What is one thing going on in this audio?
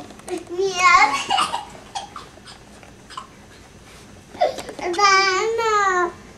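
A young girl squeals and shouts playfully close by.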